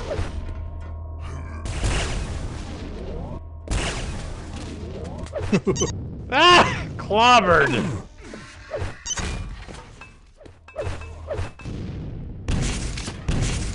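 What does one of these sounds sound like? Gunshots from a video game fire in quick bursts.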